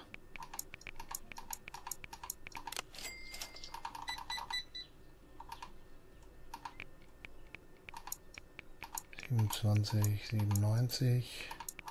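A card terminal beeps as keys are pressed.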